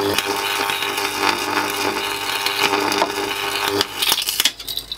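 An electric arc buzzes and hums loudly.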